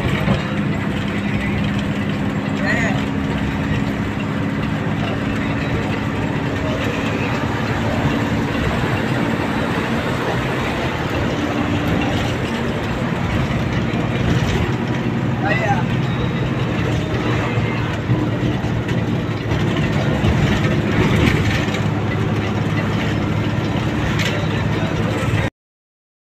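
Tyres rumble on the road as the bus drives along.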